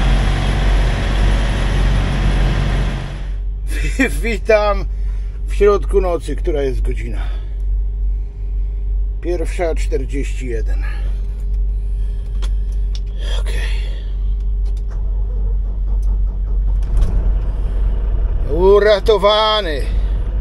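A truck engine idles with a low, steady rumble.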